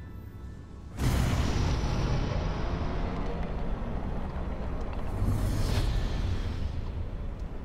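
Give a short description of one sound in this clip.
A spaceship engine roars up loudly as it boosts.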